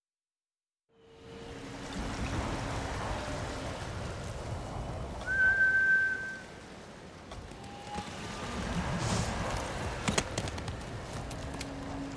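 Wind blows strongly outdoors.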